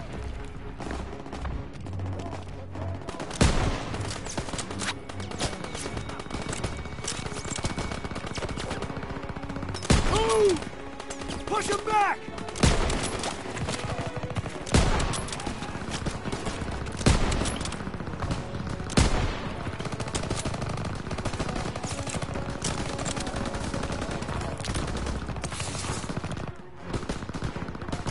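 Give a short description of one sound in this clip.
A machine gun rattles in rapid bursts.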